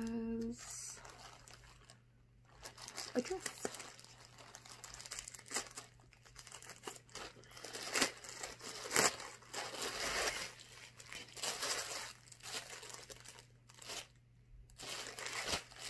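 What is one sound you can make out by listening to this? Small objects rustle and click in hands.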